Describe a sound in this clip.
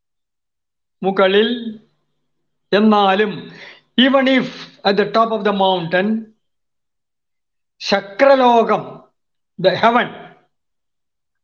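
A man sings short phrases, heard close through an online call.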